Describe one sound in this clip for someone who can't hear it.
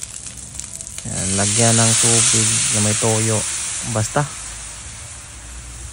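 Liquid pours into a hot pan and hisses loudly into a steady sizzle.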